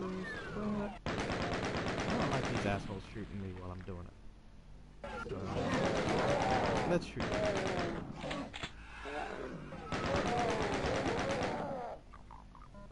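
A game's chaingun fires in rapid bursts.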